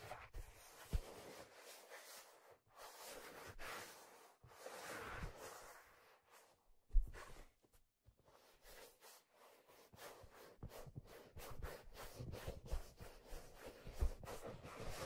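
Fingers tap on a leather hat close to a microphone.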